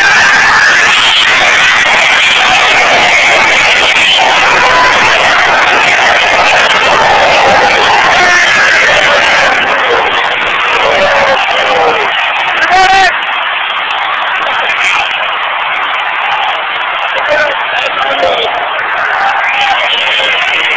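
A large crowd roars and cheers loudly in a big echoing arena.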